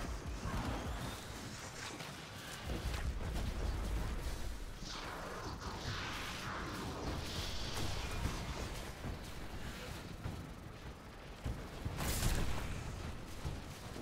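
Guns fire in quick bursts with sharp cracks.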